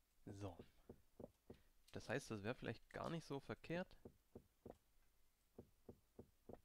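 A pickaxe taps rapidly against stone.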